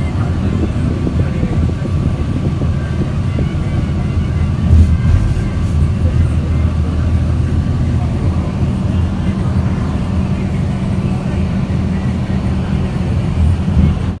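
A car engine hums steadily while driving along a road.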